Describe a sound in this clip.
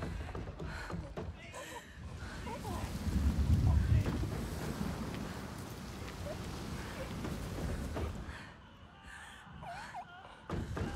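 Wind roars steadily outdoors.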